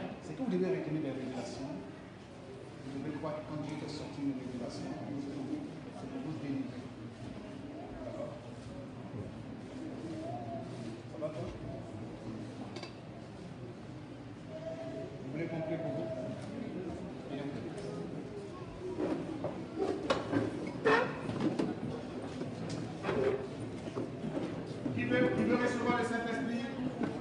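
A crowd murmurs and talks in the background.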